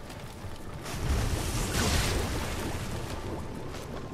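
Flames burst and roar with a whoosh.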